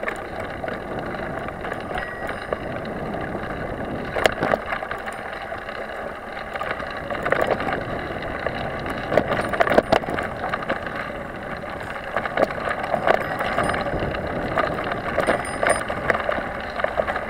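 Tyres crunch and rattle over a bumpy dirt trail.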